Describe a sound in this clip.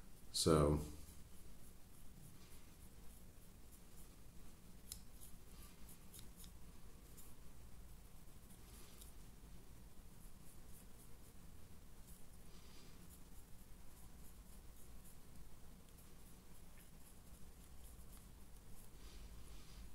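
Fingers softly handle and turn a small plastic model.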